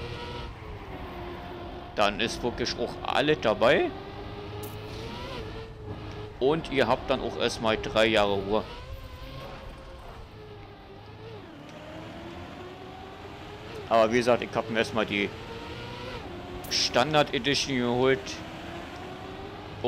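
A racing car engine hums steadily, rising and falling in pitch.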